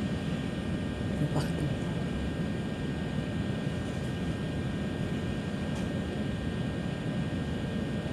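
A low, steady rumble fills the inside of a train carriage.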